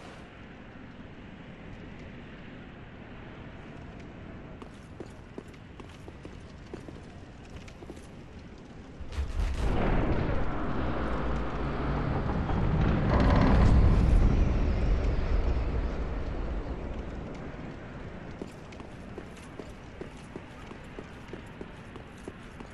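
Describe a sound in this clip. Armored footsteps clink on stone floors.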